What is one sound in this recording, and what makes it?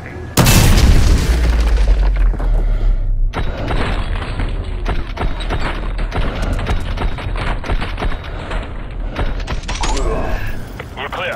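Rapid rifle gunfire echoes indoors.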